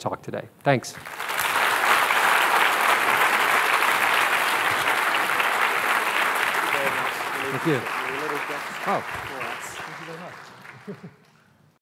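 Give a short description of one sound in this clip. An audience applauds loudly and the clapping slowly fades.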